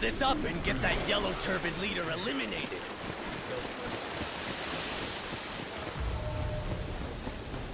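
A waterfall rushes nearby.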